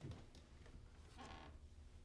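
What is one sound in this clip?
A hard case lid creaks and knocks open.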